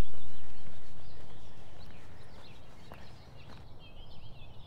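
Footsteps crunch on a leafy dirt path.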